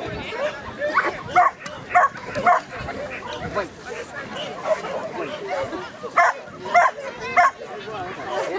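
A dog barks sharply in short bursts outdoors.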